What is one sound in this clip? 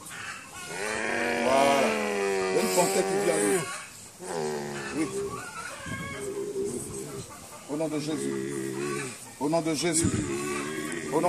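A man cries out and wails loudly close by, in long drawn-out calls.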